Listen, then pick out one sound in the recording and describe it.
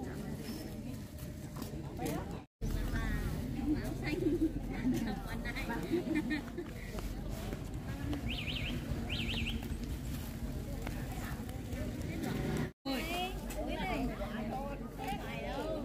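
Plastic bags rustle.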